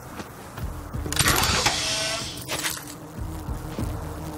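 A metal chest creaks and clanks open.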